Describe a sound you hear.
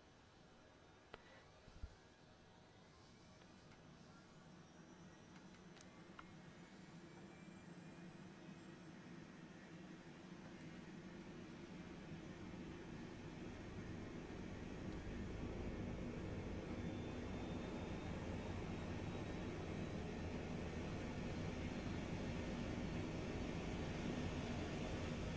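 A helicopter turbine engine spools up with a rising whine and a deepening rumble that steadily grows louder.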